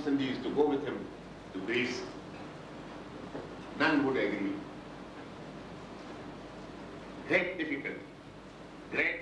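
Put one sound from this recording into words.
An elderly man speaks slowly and deliberately into a microphone, with pauses.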